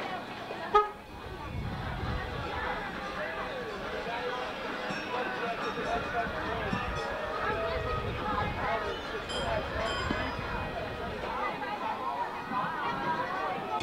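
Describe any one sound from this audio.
Young boys talk nearby.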